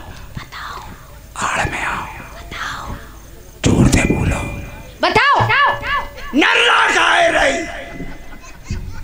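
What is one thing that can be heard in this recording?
A woman sings into a microphone over loudspeakers outdoors.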